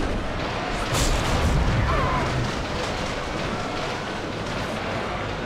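Magical energy whooshes and rumbles in a burst.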